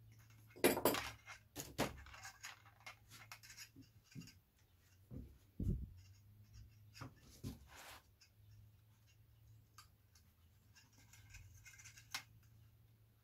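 A thin wire rustles and scrapes as hands handle it.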